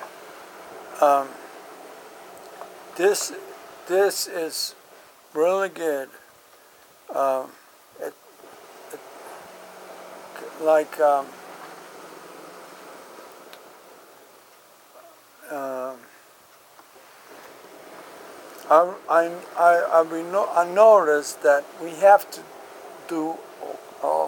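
A man speaks close by with animation, in short bursts.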